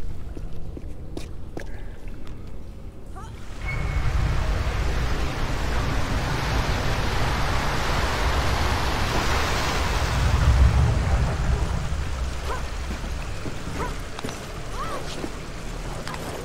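Quick footsteps tap on stone.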